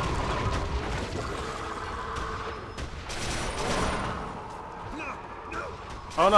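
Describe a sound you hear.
A monstrous creature growls and roars.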